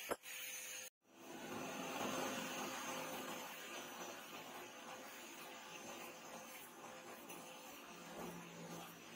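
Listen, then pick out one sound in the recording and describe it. Coals in a forge hiss and crackle as they burn.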